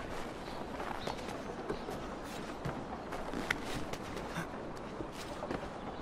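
A game character's hands and feet knock and scrape while climbing a brick wall.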